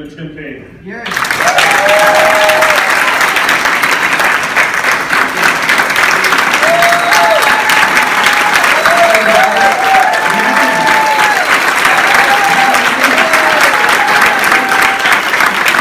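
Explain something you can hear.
A crowd claps loudly in a standing ovation.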